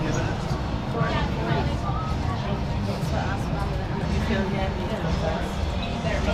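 A crowd of young men and women chatter nearby in an echoing hallway.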